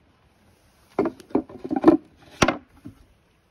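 A wooden board knocks onto stone paving.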